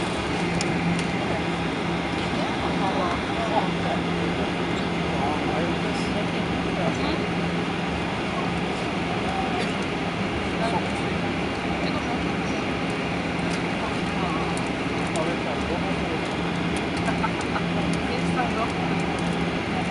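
A jet engine hums and roars steadily close by.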